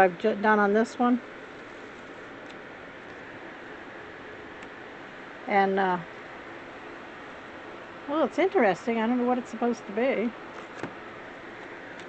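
Paper crinkles softly as it is peeled back from a print.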